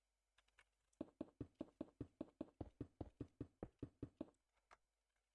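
Wooden blocks are set down one after another with quick, regular hollow knocks.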